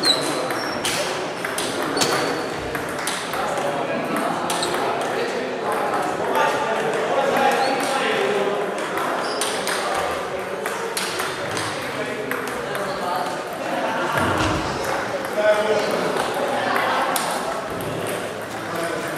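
Men's voices murmur and call out across an echoing hall.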